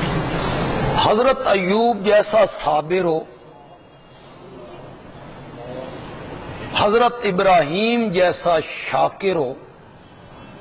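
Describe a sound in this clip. A middle-aged man speaks through a microphone in a slow, chanting voice.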